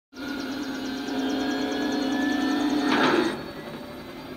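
A heavy hatch whirs and hums as it opens.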